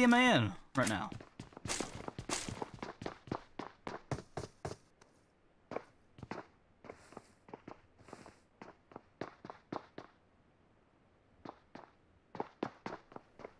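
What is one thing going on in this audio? Footsteps patter quickly on a hard surface.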